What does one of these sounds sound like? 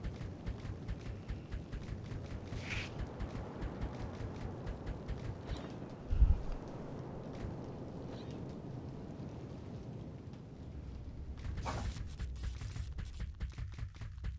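Footsteps patter quickly over rocky ground.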